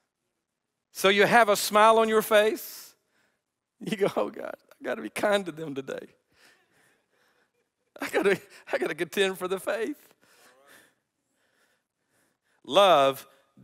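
A middle-aged man speaks with animation through a microphone, in bursts with pauses.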